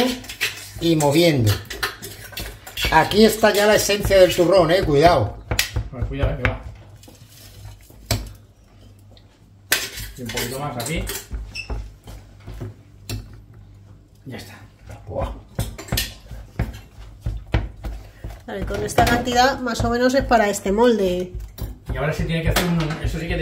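A wooden spoon scrapes and clinks in a metal pot.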